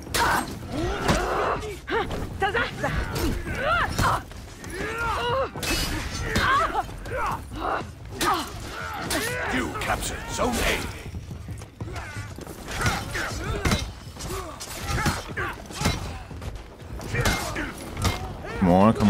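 Swords clash and clang.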